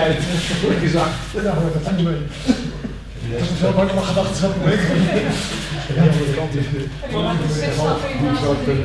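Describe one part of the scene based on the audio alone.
A man talks calmly and steadily in a large echoing hall.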